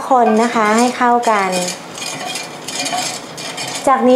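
A wooden spoon stirs liquid in a pot.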